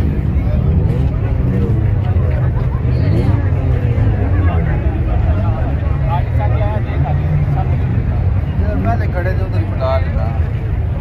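Young men talk nearby.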